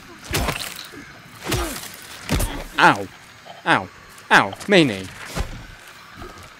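Heavy blows thud against a creature's body.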